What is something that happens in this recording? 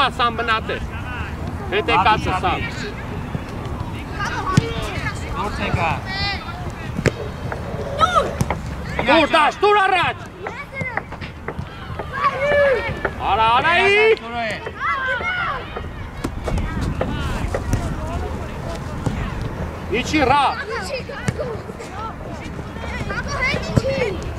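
Children shout to each other across an open field.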